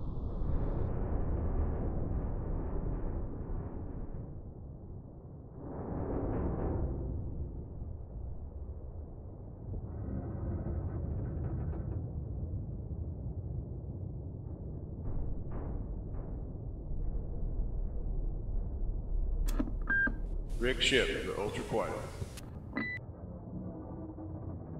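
A low underwater rumble of a submarine's engines hums steadily.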